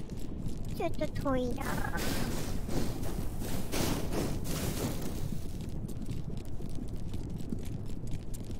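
Lava rumbles low and steady.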